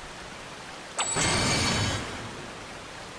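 A bright magical shimmer rings out and fades.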